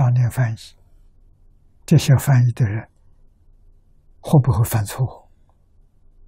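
An elderly man speaks calmly and slowly into a close microphone, in short phrases.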